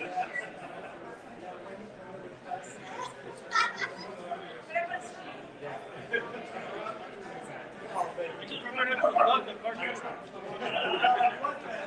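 A young woman chats and laughs softly a short distance away.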